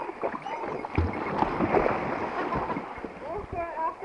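A dog splashes into water.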